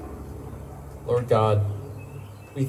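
A man speaks loudly into a microphone.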